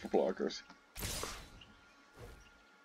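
A soft whoosh sounds as cards move to attack.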